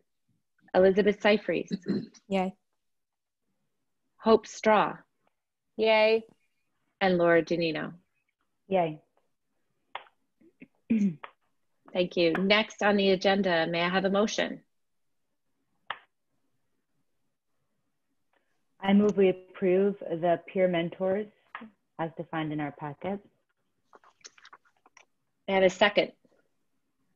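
A middle-aged woman speaks calmly over an online call, pausing often.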